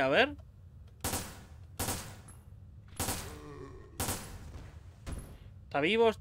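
Pistol shots fire one after another.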